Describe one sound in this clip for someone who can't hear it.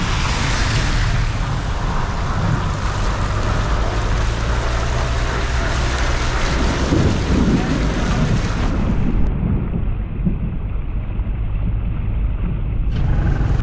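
Tyres splash through deep flood water.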